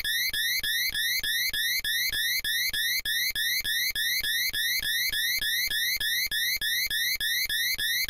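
A loud electronic game tone rises in pitch over and over, fast and steady.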